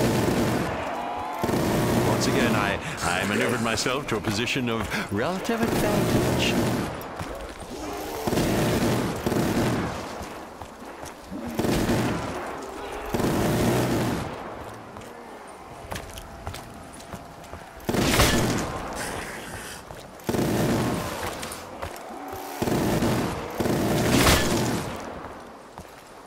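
A machine gun fires in loud, rapid bursts.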